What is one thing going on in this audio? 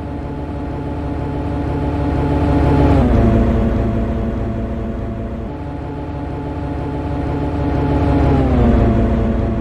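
A locomotive's electric hum passes close by, dropping in pitch as it goes.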